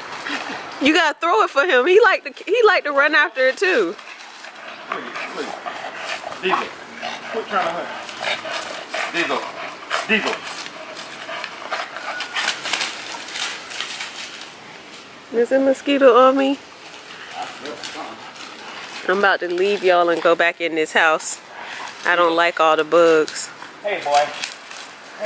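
A dog barks and whines.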